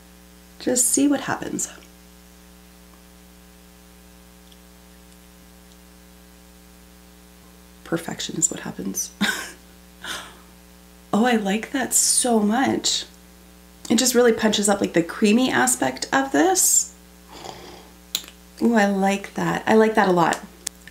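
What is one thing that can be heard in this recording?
A woman speaks calmly and cheerfully into a close microphone.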